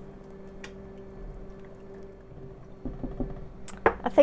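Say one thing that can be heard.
A spatula scrapes and stirs food in a pot.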